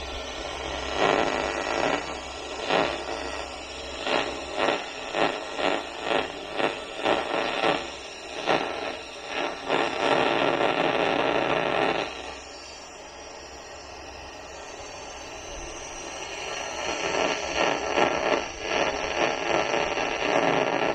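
An electronic leak detector beeps in quick rising bursts.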